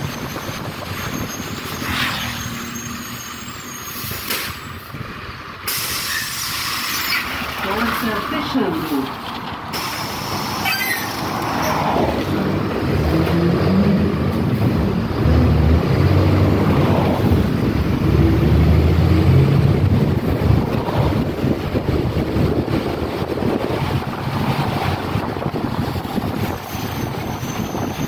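A bus engine rumbles steadily as it drives along.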